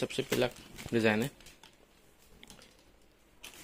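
Fabric rustles softly as it is handled.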